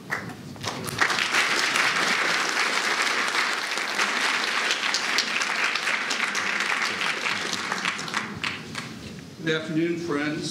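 An audience applauds in a large hall.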